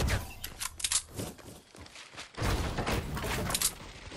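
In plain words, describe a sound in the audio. Wooden walls clatter as they are built.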